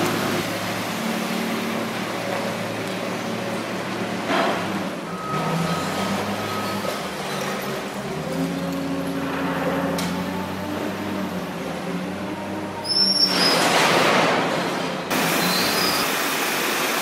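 A diesel wheel loader's engine works and revs.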